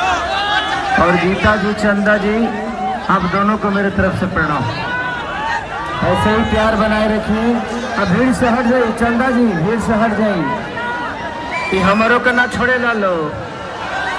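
Men in the crowd chant loudly in unison.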